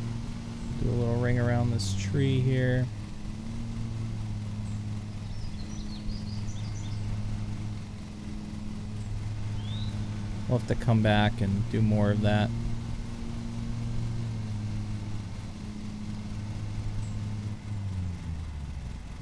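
A lawn mower engine hums steadily, then cuts off.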